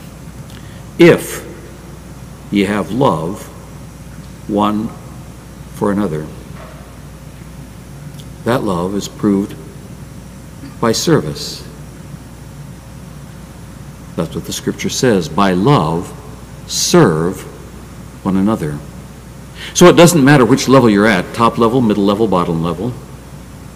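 An elderly man speaks into a microphone with emphasis, in short bursts between pauses.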